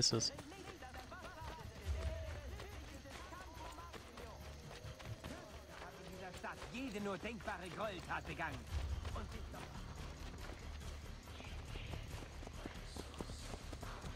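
Footsteps run quickly over a dirt path.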